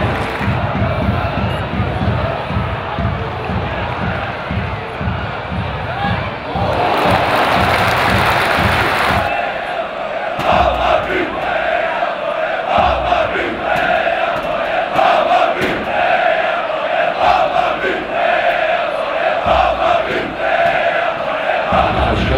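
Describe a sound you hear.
A large stadium crowd chants and cheers loudly.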